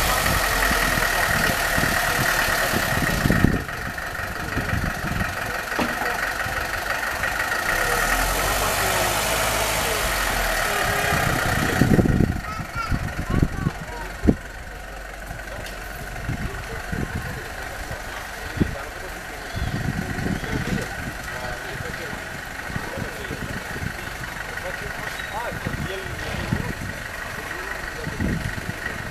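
A car engine runs and then revs as the car pulls away.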